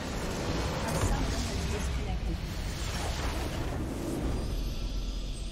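A huge magical explosion roars and crackles loudly.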